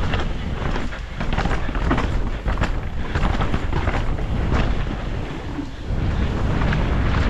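Bike tyres rumble and crunch over dirt and rocks.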